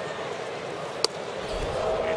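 A baseball smacks sharply into a catcher's mitt.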